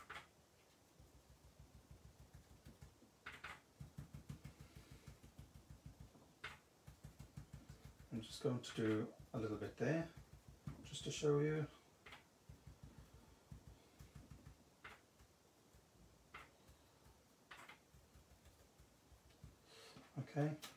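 A sponge tool dabs on paper with soft, quick, rhythmic taps.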